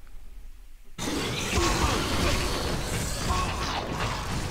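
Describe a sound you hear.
A large creature growls with a deep rumbling roar.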